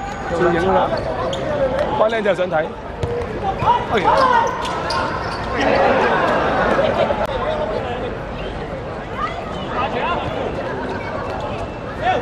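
Young men shout and call out to each other across an outdoor pitch.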